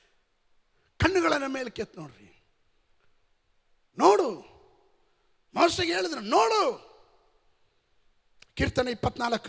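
A man speaks with animation into a microphone, in short bursts with pauses, in a large echoing hall.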